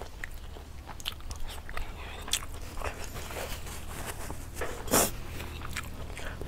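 A young woman chews and crunches food close up.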